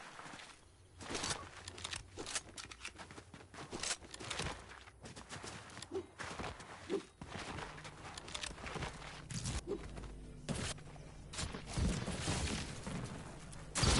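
Quick footsteps patter over ground and grass.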